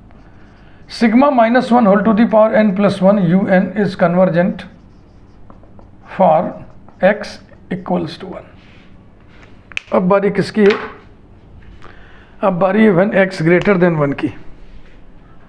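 A man speaks calmly and steadily, close by, as if explaining.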